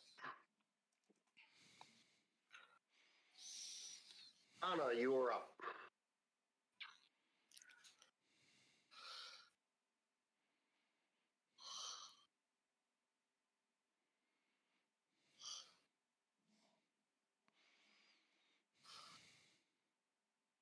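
A man speaks casually into a close microphone, in short bursts with pauses.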